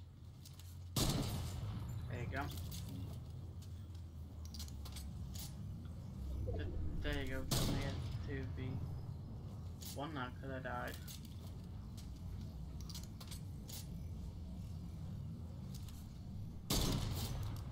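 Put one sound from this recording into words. A rifle shot cracks loudly.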